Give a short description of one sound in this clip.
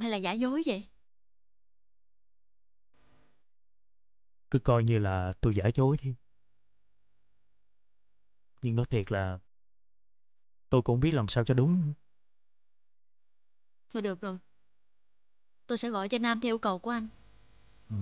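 A young woman speaks tearfully and quietly on the phone.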